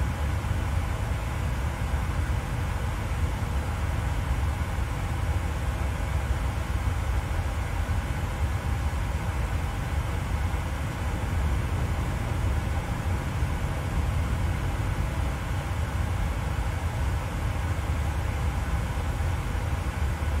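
Jet engines hum low and steady from inside a cockpit.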